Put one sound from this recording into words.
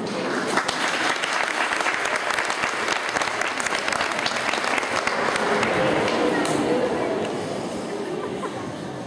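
Footsteps shuffle and tap across a wooden floor in a large echoing hall.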